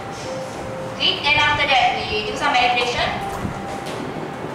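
A young woman speaks briefly and clearly, close by.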